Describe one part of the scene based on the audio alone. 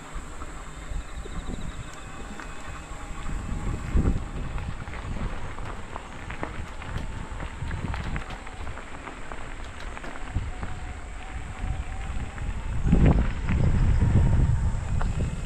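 Bicycle tyres crunch and rattle over a gravel track.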